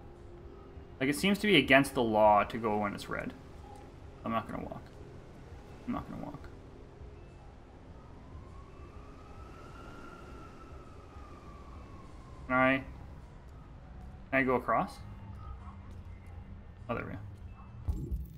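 A young man talks with animation, close to a microphone, in short bursts.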